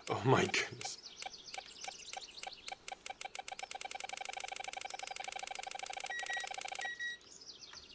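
A metal detector beeps rapidly and steadily.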